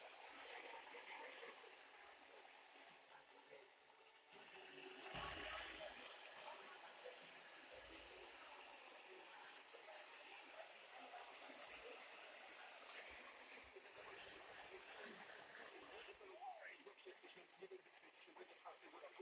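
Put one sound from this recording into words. A small radio plays a faint, hissy broadcast.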